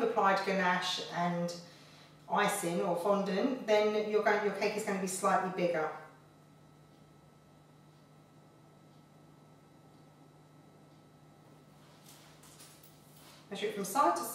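A woman speaks calmly and clearly into a nearby microphone.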